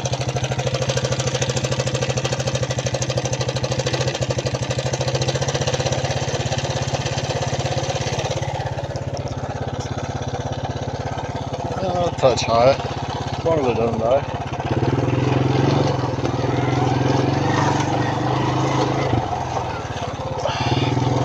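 An all-terrain vehicle engine idles with a steady low hum.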